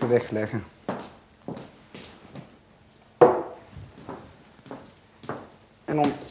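A man's footsteps thud on a hard floor.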